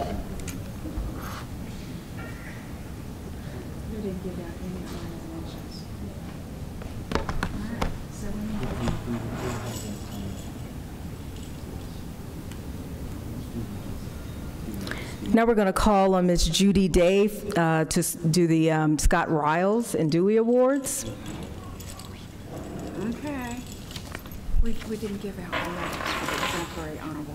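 An audience murmurs quietly.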